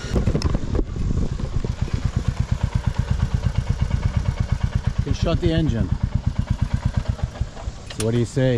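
A motorcycle engine idles with a steady, rapid thumping.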